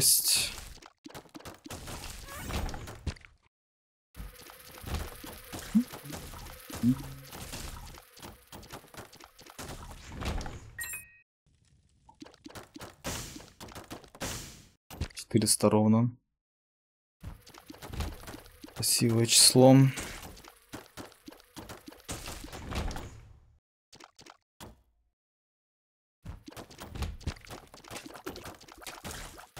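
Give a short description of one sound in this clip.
Video game sound effects of shots, splats and hits play in quick bursts.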